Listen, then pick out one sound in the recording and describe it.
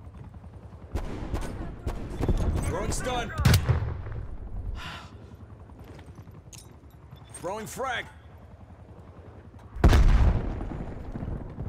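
Rapid gunfire rings out in loud bursts.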